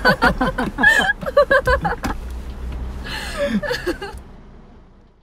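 A young woman laughs softly.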